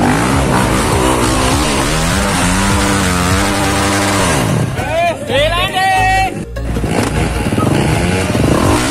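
A dirt bike engine revs hard and whines as it climbs a steep slope.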